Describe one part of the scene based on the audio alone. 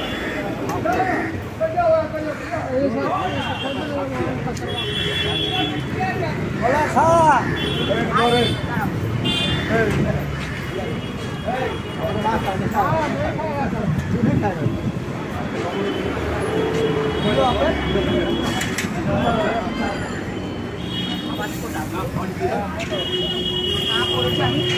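Men and women talk nearby outdoors in a busy street.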